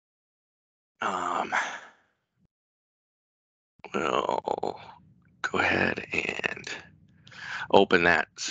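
A man speaks calmly through a headset microphone over an online call.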